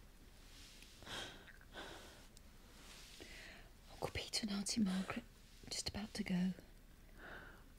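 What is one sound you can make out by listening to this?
A woman speaks softly and soothingly close by.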